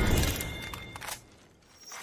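Rapid gunshots crack sharply.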